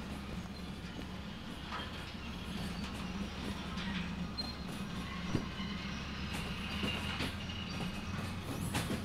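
A freight train rumbles steadily along the rails.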